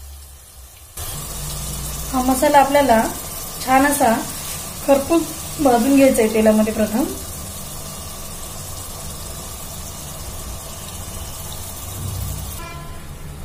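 Food sizzles gently in a pot.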